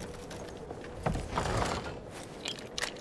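A wooden hatch bumps open with a heavy thud.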